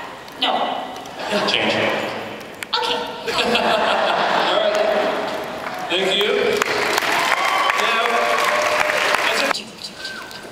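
A young man talks with animation through a microphone in a large hall.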